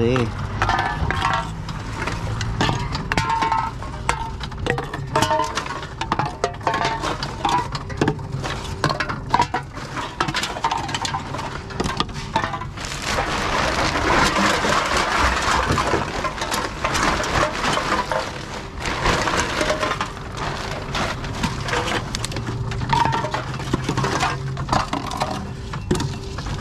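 Cans clatter and knock against each other.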